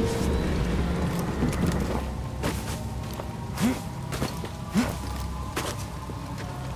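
Leaves rustle and thump as a climber grabs at a wall of vines.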